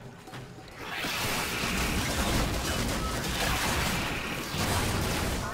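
Fiery explosions burst and crackle.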